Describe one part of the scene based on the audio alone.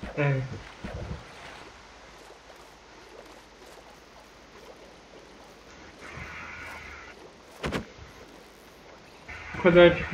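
Bubbles gurgle underwater.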